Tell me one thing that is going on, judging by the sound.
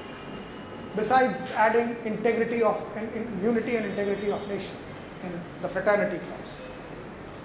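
A middle-aged man speaks with animation into a microphone, heard through a loudspeaker.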